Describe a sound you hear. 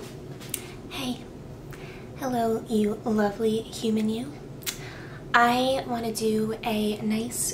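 A young woman speaks calmly and closely into a microphone.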